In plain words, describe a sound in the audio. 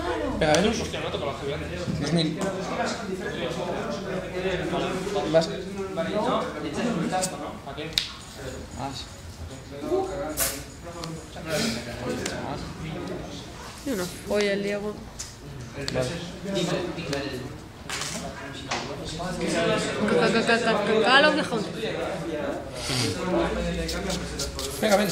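Several young people talk close by.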